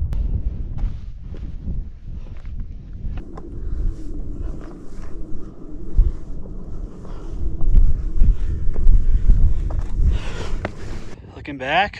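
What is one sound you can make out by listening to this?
Boots crunch and scrape on loose rock.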